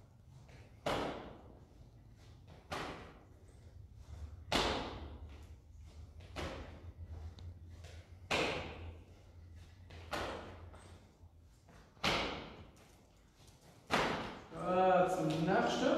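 A man stamps his feet hard on the floor in an echoing room.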